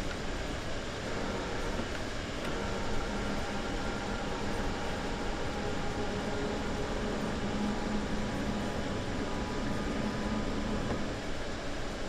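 An electric train motor hums with a low whine, then falls quiet.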